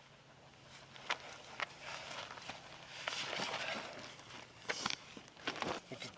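A backpack rustles and its buckles click as it is taken off.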